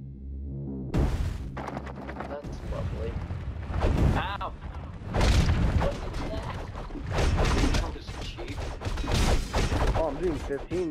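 Swords clash and slash in a fast fight.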